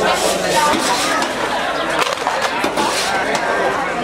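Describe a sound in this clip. A metal scoop clinks and scrapes in a steel tray.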